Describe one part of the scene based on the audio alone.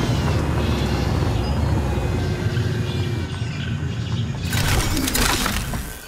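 A vehicle engine rumbles steadily as it drives over a dirt track.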